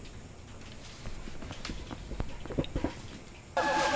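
Wooden knocks and clunks sound as a gramophone is set down.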